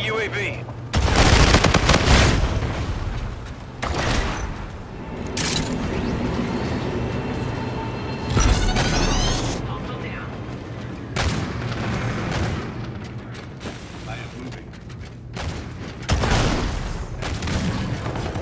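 Rapid gunfire bursts out loudly in short volleys.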